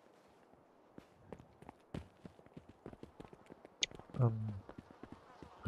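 Footsteps run quickly over hard ground and gravel.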